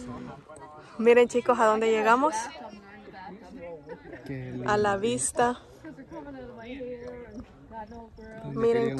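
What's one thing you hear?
People chat quietly outdoors.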